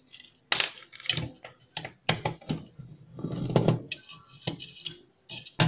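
Plastic parts click and knock as hands work on a small device.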